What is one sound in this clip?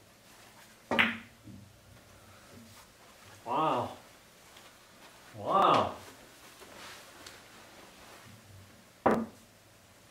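A cue stick strikes a billiard ball with a sharp crack.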